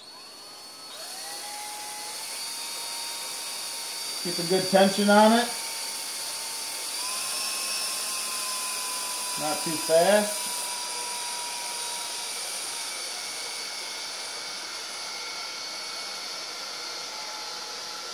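A cordless drill whirs steadily as it spins a long auger bit.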